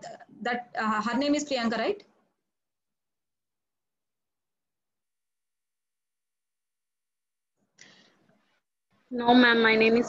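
A woman speaks calmly over an online call.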